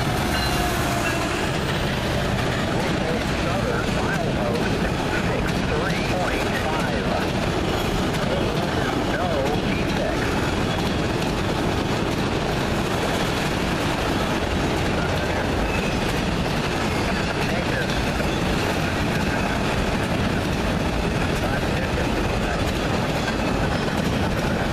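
Steel wheels squeal and clatter on the rails.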